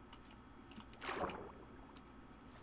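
Water splashes as something plunges in.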